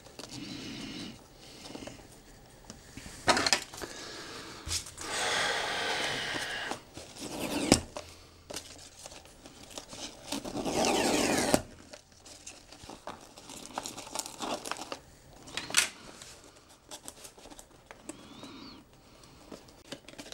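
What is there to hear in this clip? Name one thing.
Paper crinkles and rustles as it is handled.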